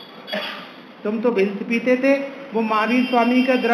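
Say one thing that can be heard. A young man sings through a microphone.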